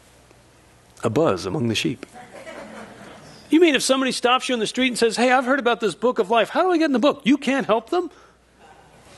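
A young man speaks with animation into a microphone in a large echoing hall.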